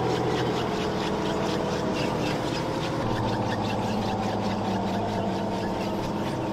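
A tracked vehicle's engine rumbles and drones steadily.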